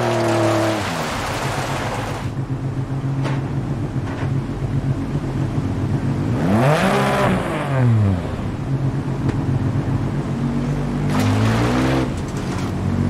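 A rally car engine idles with a low rumble, blipped now and then.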